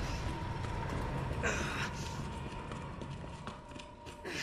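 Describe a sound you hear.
Footsteps sound on a hard floor.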